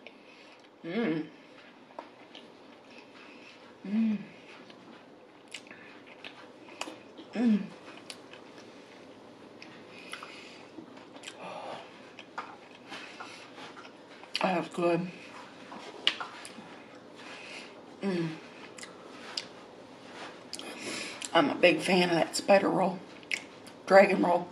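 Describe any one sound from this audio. A young woman chews food and smacks her lips close to a microphone.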